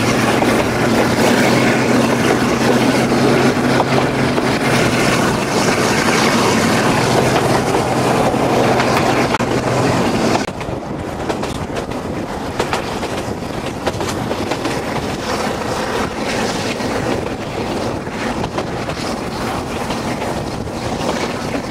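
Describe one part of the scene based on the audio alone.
Train wheels rattle and clatter along the rails.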